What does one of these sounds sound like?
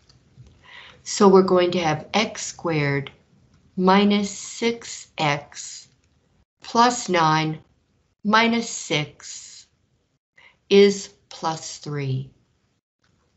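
An elderly woman speaks calmly, explaining, into a microphone close by.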